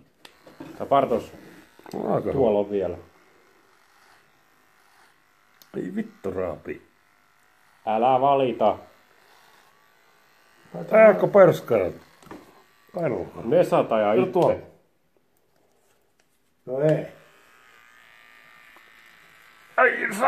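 An electric hair clipper buzzes steadily.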